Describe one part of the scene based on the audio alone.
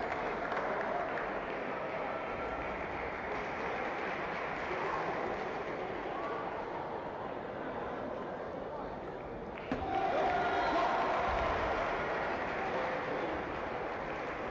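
Many voices murmur and chatter in a large echoing hall.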